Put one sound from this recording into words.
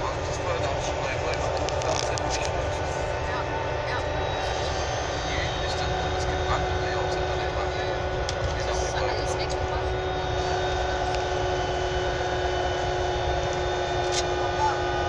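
Train wheels click and squeal on the rails.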